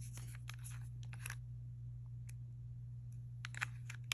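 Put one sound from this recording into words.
A plastic cap is twisted off a small bottle.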